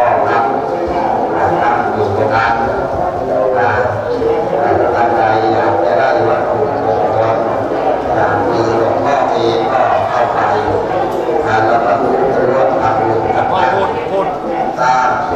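An elderly man speaks steadily through a microphone.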